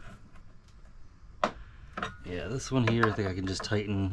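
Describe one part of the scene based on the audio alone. Metal fittings clink as they are handled.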